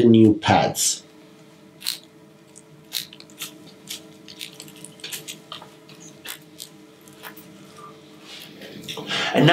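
Scissors snip through small twigs and foliage in quick, crisp clicks.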